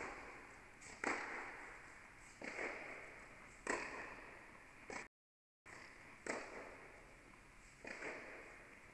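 Tennis balls are struck back and forth with sharp pops that echo in a large indoor hall.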